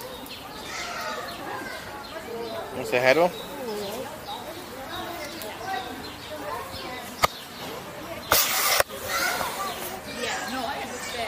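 A young woman talks nearby with animation.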